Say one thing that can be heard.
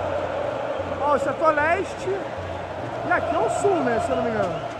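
Men nearby shout and cheer loudly.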